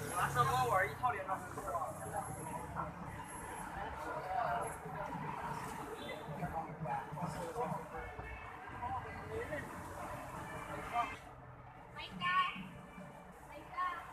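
A crowd of young people chatter nearby outdoors.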